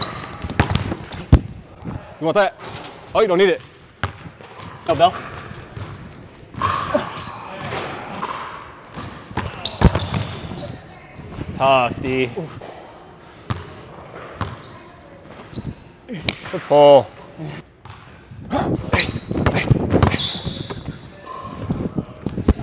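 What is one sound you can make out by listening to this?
A basketball bounces hard on a wooden floor in an echoing gym.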